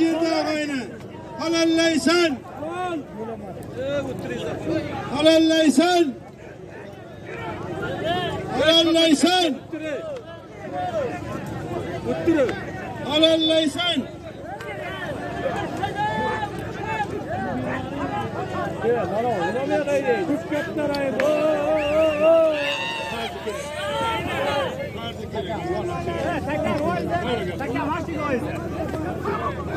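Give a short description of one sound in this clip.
A large crowd of men shouts and chatters loudly outdoors.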